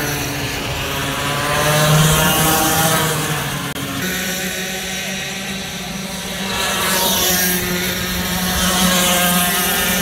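Kart engines buzz loudly as karts race past.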